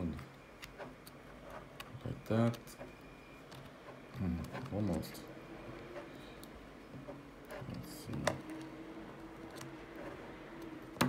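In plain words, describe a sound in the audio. Small plastic and metal parts click and scrape as a fingertip works a card into a tiny slot.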